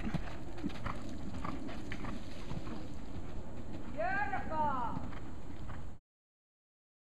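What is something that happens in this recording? A horse's hooves thud on soft ground at a canter.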